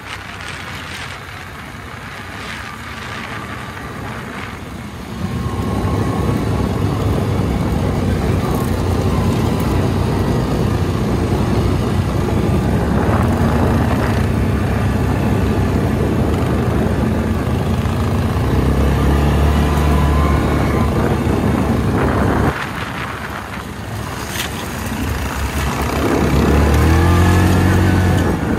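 Quad bike engines rumble and rev nearby.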